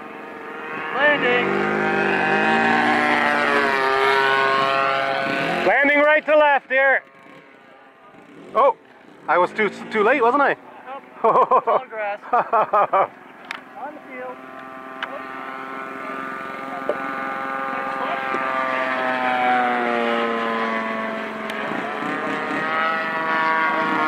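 A model airplane engine whines as the plane flies overhead, its pitch rising and falling.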